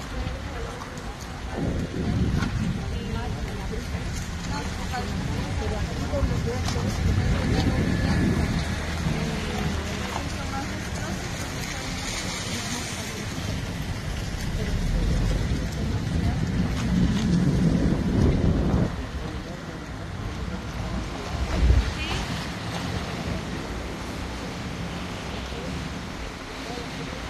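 Wind gusts and rumbles outdoors.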